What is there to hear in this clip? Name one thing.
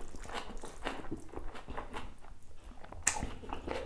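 A man slurps noodles close to a microphone.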